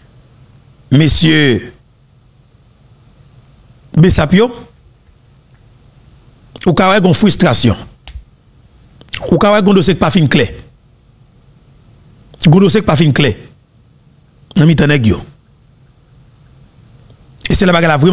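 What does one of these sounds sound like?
A man speaks into a microphone in short bursts, with pauses between them.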